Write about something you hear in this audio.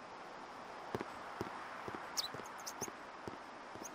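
Footsteps walk on a dirt path.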